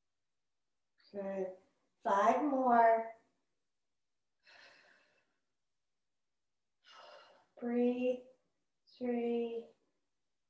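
A woman speaks calmly in short phrases, close by.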